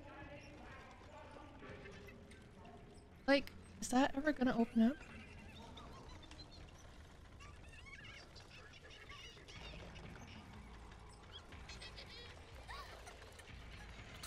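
A young woman talks into a close microphone with animation.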